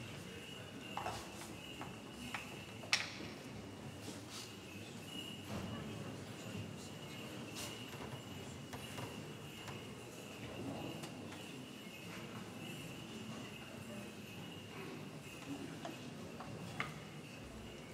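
People shuffle and knock lightly on a hard floor.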